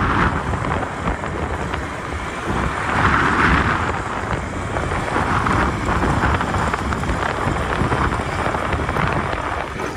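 Wind buffets loudly against a moving vehicle outdoors.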